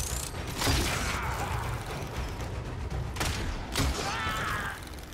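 Arrows whoosh through the air.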